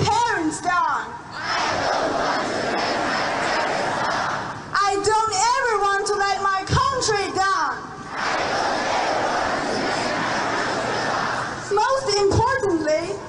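A man shouts loudly through a microphone.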